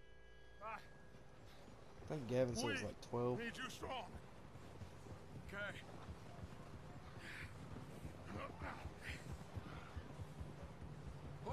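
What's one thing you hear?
Horses trot through snow with soft muffled hoofbeats.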